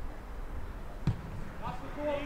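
A rugby ball is kicked with a dull thump.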